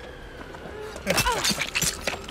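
A blade swings and thuds into flesh.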